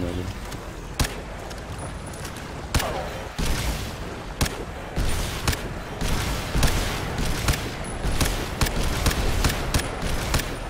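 A rifle fires in short bursts of sharp shots.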